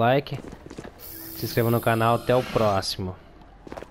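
A crackling energy blast roars and hisses.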